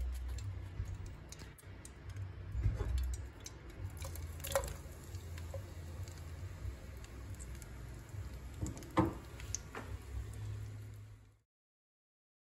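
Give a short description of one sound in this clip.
Oil sizzles in a hot pan.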